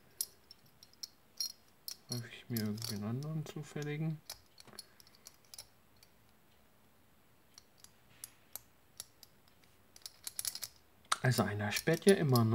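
Metal puzzle pieces click and clink together as hands turn them.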